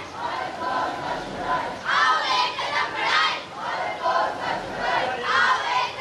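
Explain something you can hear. A group of children chant slogans loudly outdoors.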